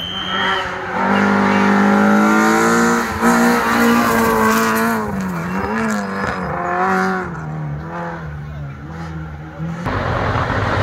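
A rally car engine roars loudly, revving up and down as the car speeds past.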